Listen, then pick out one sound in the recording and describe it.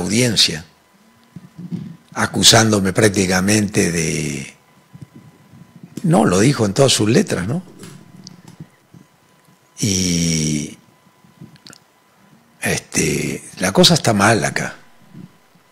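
An elderly man speaks calmly and closely into a microphone, with pauses.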